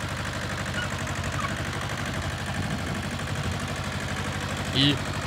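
A small tractor engine chugs steadily close by.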